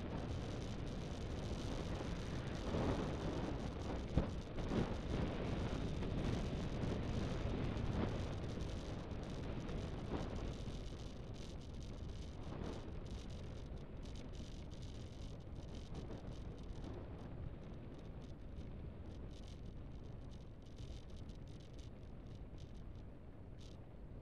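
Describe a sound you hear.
Wind rushes and buffets loudly past a small vehicle moving fast down a road.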